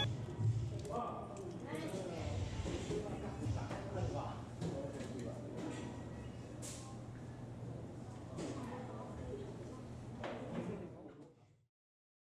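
People talk in the background of an echoing hall.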